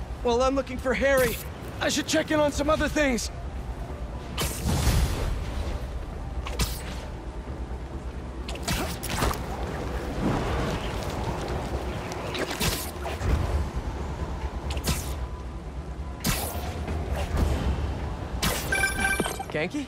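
Air rushes past in loud bursting whooshes.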